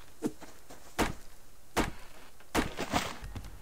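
An axe chops into wood with sharp thuds.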